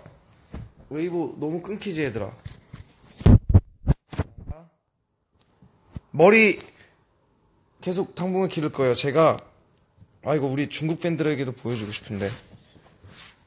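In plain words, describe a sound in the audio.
A young man talks animatedly close by.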